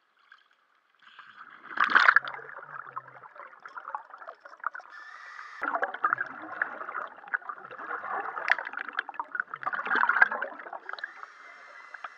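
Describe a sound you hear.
Water bubbles and gurgles, heard muffled from underwater.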